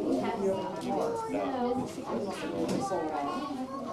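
A woman talks with a man nearby.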